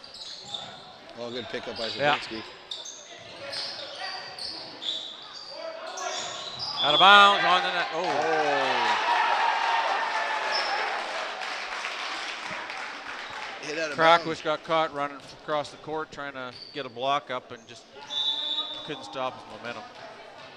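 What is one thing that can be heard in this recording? Young men shout loudly on a court.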